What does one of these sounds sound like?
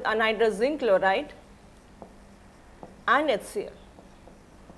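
A woman speaks calmly, as if explaining, close to a microphone.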